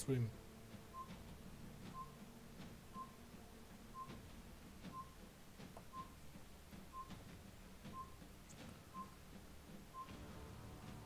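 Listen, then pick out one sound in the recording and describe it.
A short beep sounds once every second, counting down.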